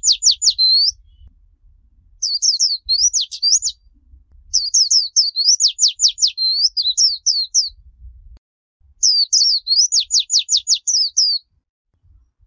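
A small bird sings close by in quick bursts of sharp, high chirps and trills.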